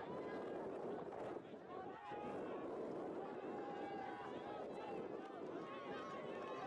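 Players shout to each other outdoors across an open field.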